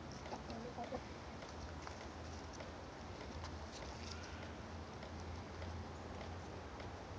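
Chickens cluck softly close by.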